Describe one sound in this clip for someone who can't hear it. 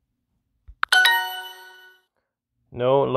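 A phone app plays a short bright chime.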